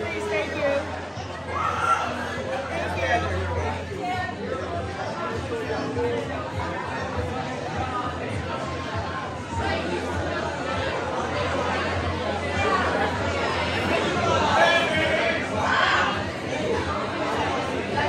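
A crowd of people chatters throughout in a large echoing hall.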